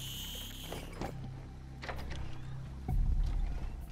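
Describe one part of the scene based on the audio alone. A heavy door swings open with a thud.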